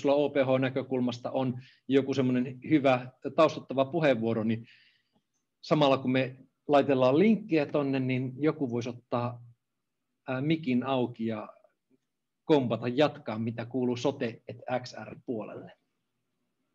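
A middle-aged man speaks with animation close to a microphone, as on an online call.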